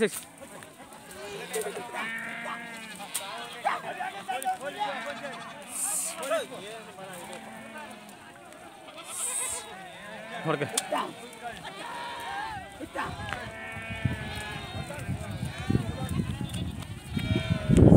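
Goats bleat loudly and often, close by.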